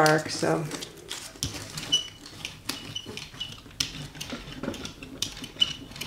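A rubber roller rolls over a surface with soft, sticky rasps and taps.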